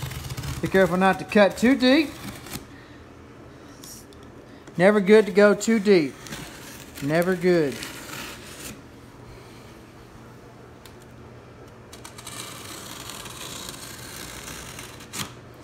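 A blade slices through packing tape on a cardboard box.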